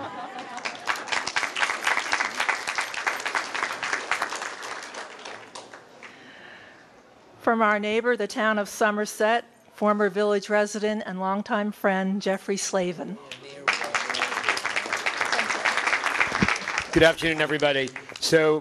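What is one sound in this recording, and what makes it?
An audience claps and cheers in a room.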